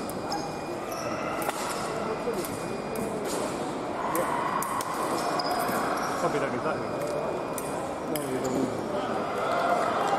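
Fencers' shoes stamp and squeak on the piste.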